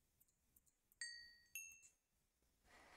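Short game chimes ring as items are moved.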